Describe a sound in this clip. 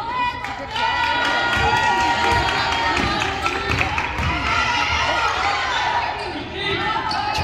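A crowd of spectators calls out and cheers in a large echoing gym.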